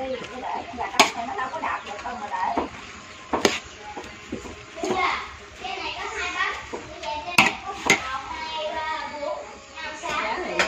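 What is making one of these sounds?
A metal spatula scrapes and clinks against a pot while stirring.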